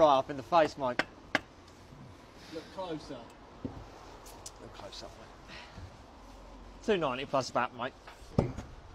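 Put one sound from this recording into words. A man talks close by in a calm voice.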